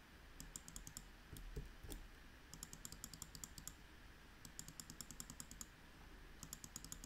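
A computer mouse clicks rapidly in quick bursts.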